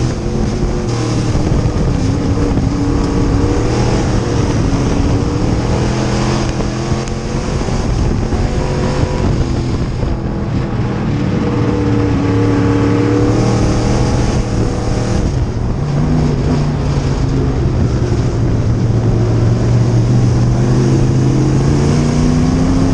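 A race car engine roars loudly from inside the cockpit, rising and falling as the car revs through turns.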